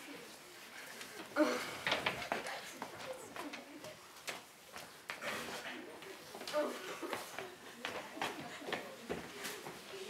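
Young girls speak with animation in an echoing hall.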